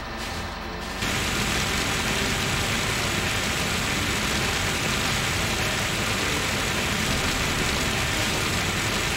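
Water sprays from a hose with a steady hiss.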